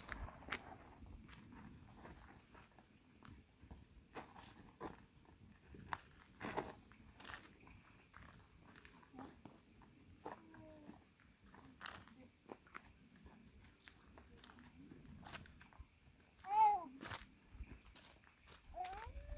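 Feet shuffle and tap on dry ground.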